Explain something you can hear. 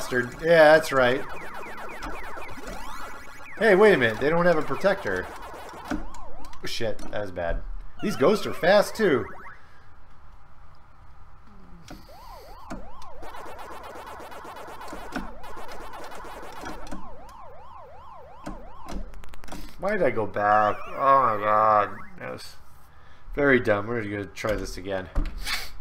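An arcade maze game plays a warbling siren and chirping sound effects.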